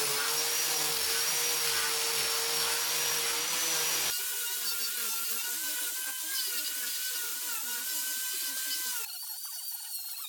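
An angle grinder whines steadily as it sands wood.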